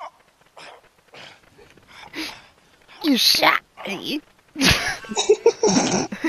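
A man groans and pants in pain.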